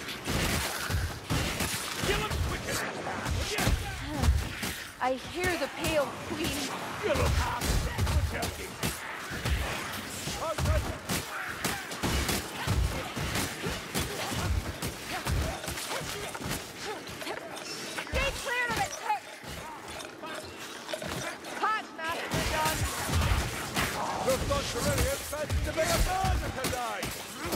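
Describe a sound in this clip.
A sword slashes and hacks into flesh again and again.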